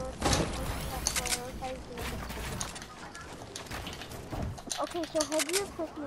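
Wooden walls are built with quick knocking thuds.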